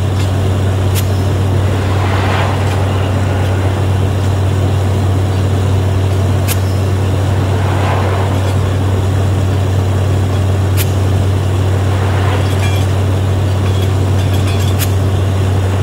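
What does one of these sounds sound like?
Metal clanks sharply now and then.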